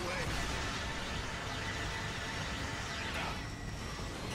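A laser weapon blasts with a loud crackling roar.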